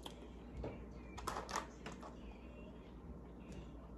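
A ketchup squeeze bottle squirts and sputters.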